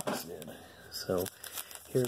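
A foil wrapper crinkles as hands handle a card pack.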